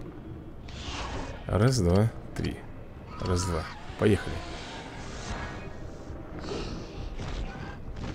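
A large creature roars and growls.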